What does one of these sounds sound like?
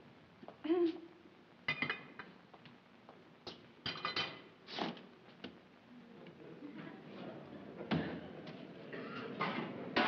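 Dishes and pots clink and clatter.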